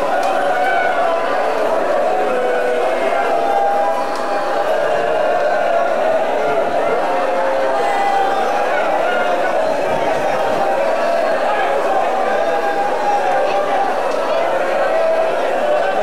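A large crowd of men chants loudly together in an echoing hall.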